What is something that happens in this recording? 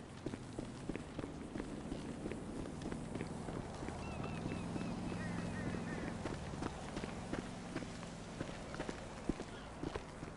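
Footsteps thud on wooden stairs and then crunch on dry ground.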